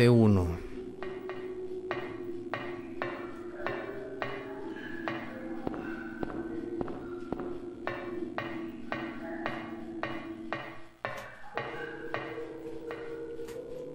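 Footsteps clank steadily on a metal grating.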